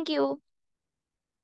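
A young woman speaks briefly and clearly into a headset microphone.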